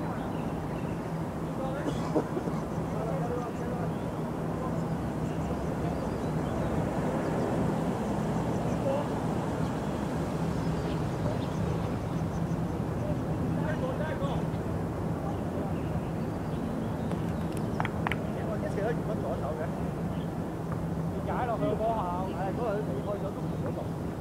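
Wind rumbles steadily across an open field outdoors.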